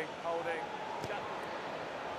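A rugby ball is kicked with a dull thud.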